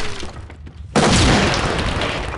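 A stun grenade goes off with a loud blast and a hissing roar.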